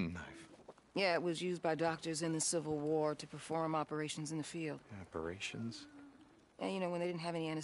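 A woman speaks earnestly.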